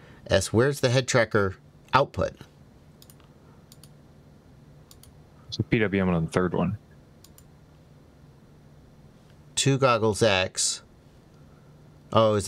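A man speaks calmly and close into a microphone, in short bursts with pauses.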